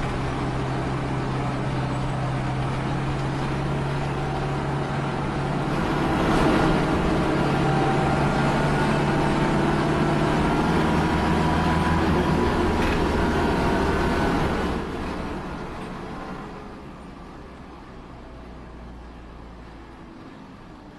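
A bus engine hums steadily, then fades as the bus moves away.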